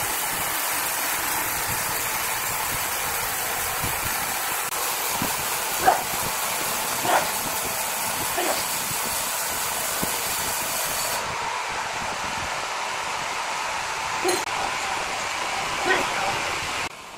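A large band sawmill runs.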